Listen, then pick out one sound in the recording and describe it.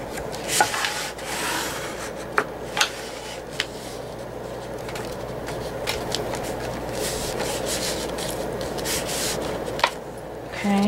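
Paper rustles and scrapes as hands smooth it flat.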